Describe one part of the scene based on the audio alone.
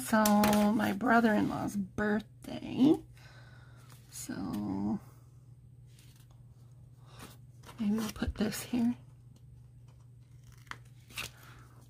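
A sticker sheet rustles and stickers peel off.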